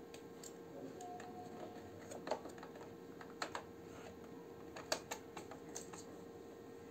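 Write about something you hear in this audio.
Hands click and tap on the plastic parts of a toy truck.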